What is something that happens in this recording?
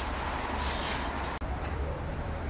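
Cream is stirred in a metal bowl.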